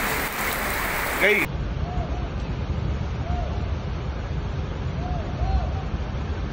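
Muddy floodwater rushes and roars in a torrent.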